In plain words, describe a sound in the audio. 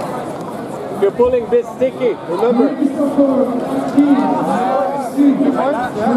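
A man shouts instructions loudly nearby.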